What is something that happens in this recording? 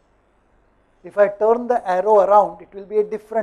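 An older man speaks calmly into a clip-on microphone.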